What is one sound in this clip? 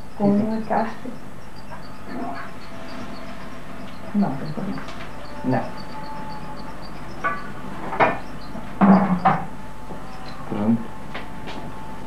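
A man speaks briefly in reply.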